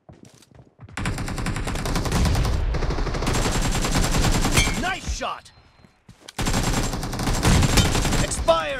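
An automatic rifle fires in long, rapid bursts.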